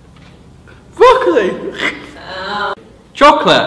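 A young woman exclaims loudly, close up.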